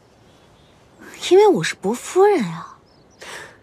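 A second young woman answers with animation.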